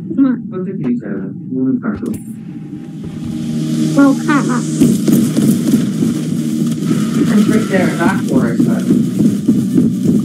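A young man talks with animation over a microphone.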